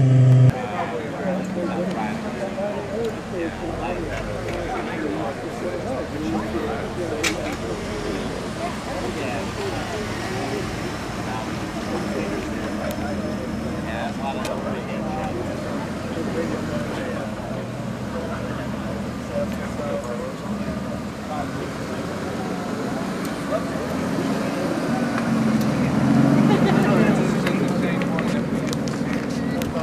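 A sports car engine idles with a deep, steady rumble and swells as the car rolls past close by.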